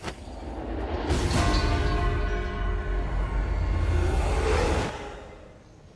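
A huge dragon roars loudly.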